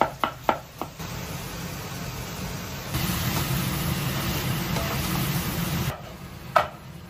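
Food sizzles loudly in a hot pan.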